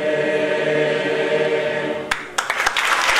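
A large mixed choir sings a sustained chord in a hall.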